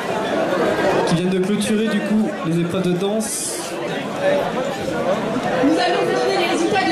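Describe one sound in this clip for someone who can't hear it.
A woman sings into a microphone through a loudspeaker.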